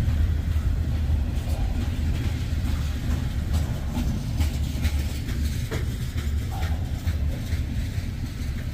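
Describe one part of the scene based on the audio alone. A freight train rumbles past up close.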